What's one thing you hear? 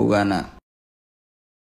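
A young man speaks briefly, close by.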